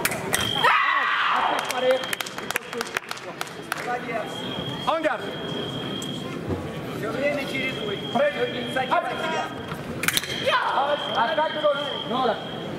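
A man calls out commands in a large echoing hall.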